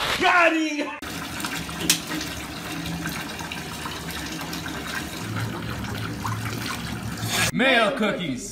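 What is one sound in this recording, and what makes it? Water pours steadily into a bathtub.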